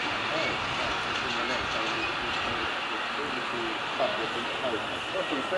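A small model locomotive hums steadily along its track.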